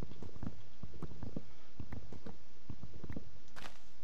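A hatchet chops at wood with dull knocks.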